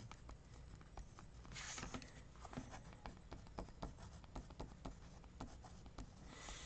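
A felt-tip pen scratches and squeaks on paper.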